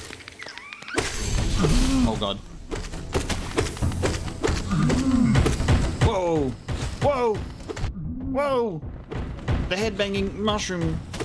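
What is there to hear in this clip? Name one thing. Slashes and hits from a game fight sound loudly.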